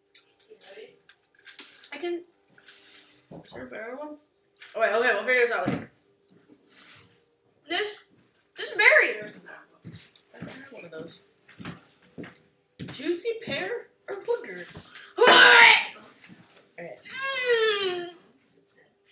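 A second young woman talks and laughs nearby.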